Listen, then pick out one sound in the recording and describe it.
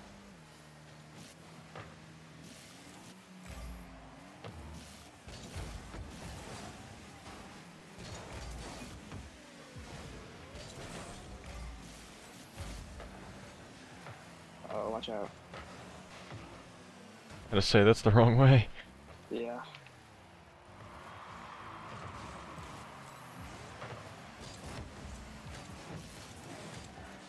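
A car engine roars and boosts in a video game.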